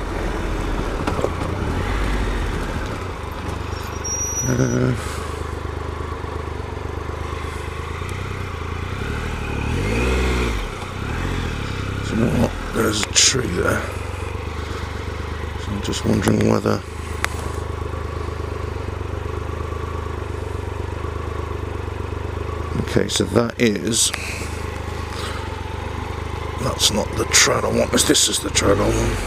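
A motorcycle engine hums steadily as it rides along a dirt trail.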